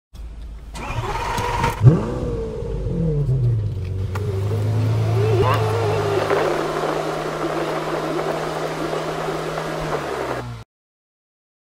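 A car engine hums.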